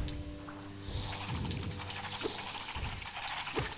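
Game wings flap with soft whooshes.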